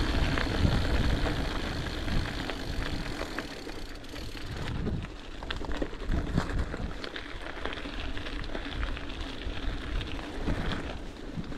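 Bicycle tyres crunch over a gravel path.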